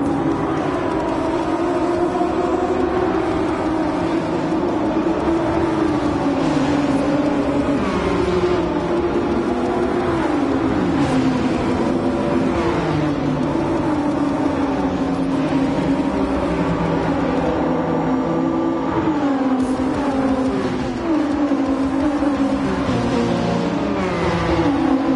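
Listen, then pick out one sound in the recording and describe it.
Several racing car engines roar loudly, rising and falling in pitch as they shift gears.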